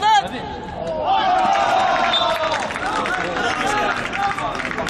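A group of young men cheer loudly together.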